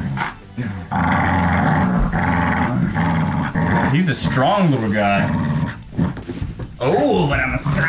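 A dog growls steadily up close.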